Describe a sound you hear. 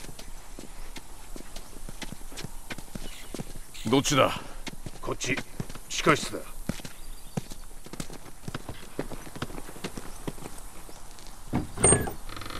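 Footsteps tread steadily on grass and dirt.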